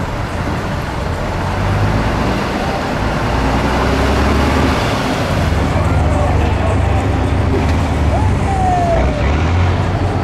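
Large tyres churn and splash through thick mud.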